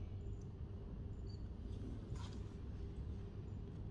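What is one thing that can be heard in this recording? A page of a book rustles as it is turned.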